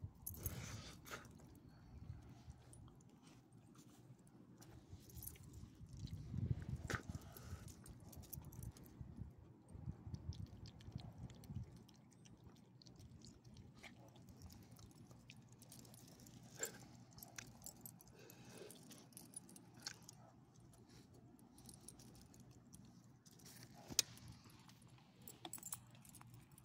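Dog tags and leash clips jingle.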